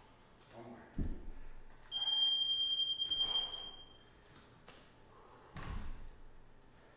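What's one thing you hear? A kettlebell thumps down on a wooden floor.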